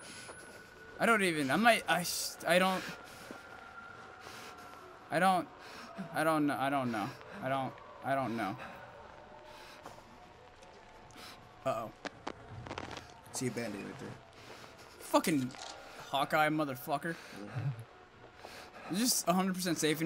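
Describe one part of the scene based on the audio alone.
A young man talks with animation into a microphone, close by.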